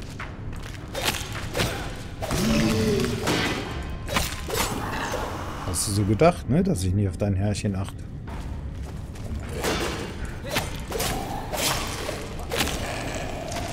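Swords clang and strike in quick blows.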